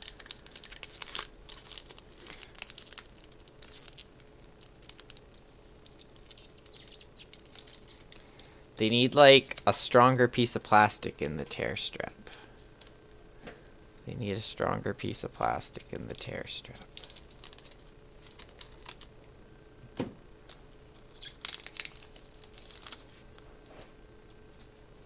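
Plastic card sleeves crinkle and rustle between hands.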